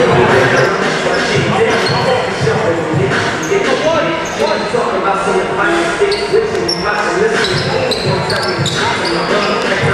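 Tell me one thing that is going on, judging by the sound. A crowd cheers and murmurs in a large echoing hall.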